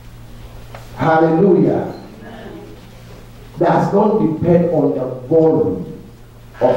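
A man speaks with animation into a microphone, heard through loudspeakers.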